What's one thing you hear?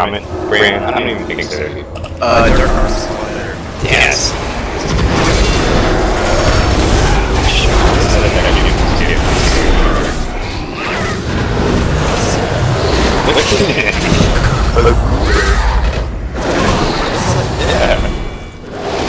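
Spell effects and weapon strikes crackle and clang in a game battle.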